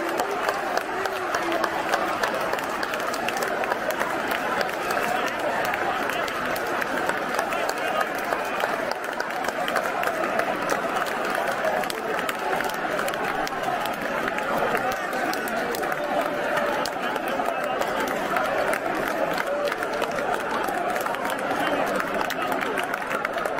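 A large stadium crowd sings and chants loudly throughout.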